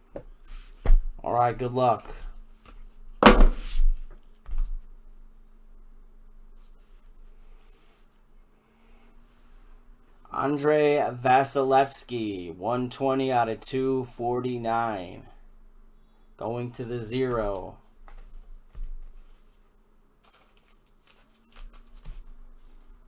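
Plastic packaging and cards rustle and tap as hands handle them.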